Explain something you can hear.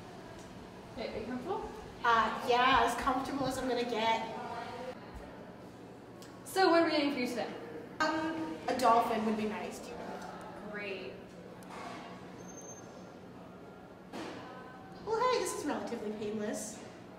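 A young woman talks close by, calmly.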